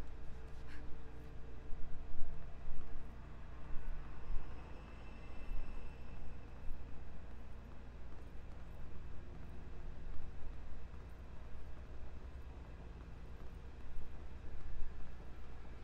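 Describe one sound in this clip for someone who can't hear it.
A deep rumble drones steadily.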